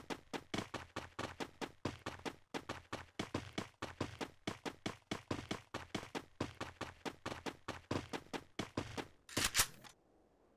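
Footsteps thud quickly on grass as a game character runs.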